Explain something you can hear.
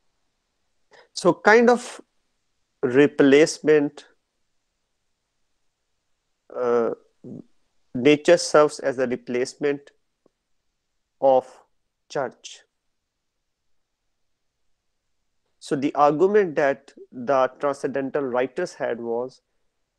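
A young man lectures calmly over an online call, pausing between phrases.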